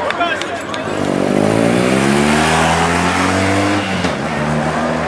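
A motorcycle engine revs up close and passes by.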